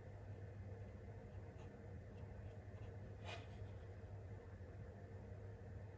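A small paintbrush strokes softly and quietly.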